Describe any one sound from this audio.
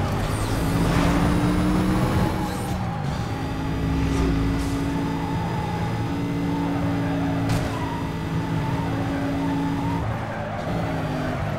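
A car engine roars steadily at high speed, shifting gears now and then.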